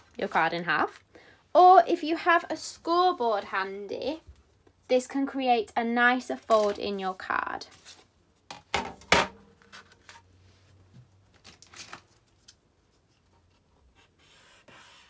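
Paper rustles softly as hands move it about.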